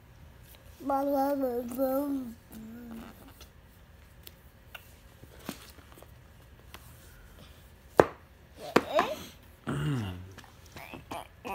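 A young child sings and babbles close by.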